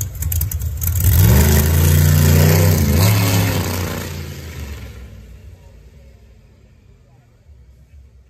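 A race car roars off at full throttle and fades into the distance.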